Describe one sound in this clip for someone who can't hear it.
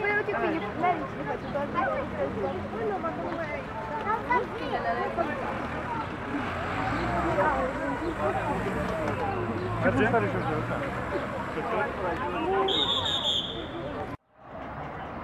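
Several men talk with animation nearby outdoors.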